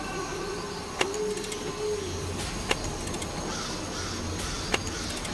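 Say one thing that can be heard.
Puzzle pieces click into place as they turn.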